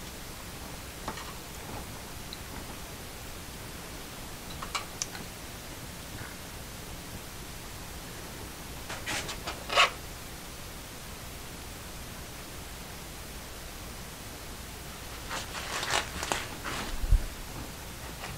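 Plastic cups knock and clatter on a table.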